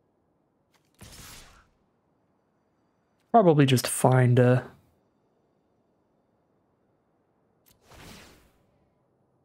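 Short, soft whooshing game sound effects play.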